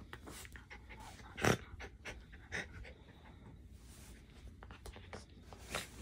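A dog sniffs and snuffles at a blanket.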